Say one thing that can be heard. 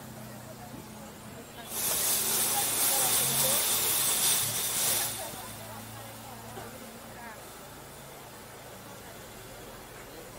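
A car engine hums nearby.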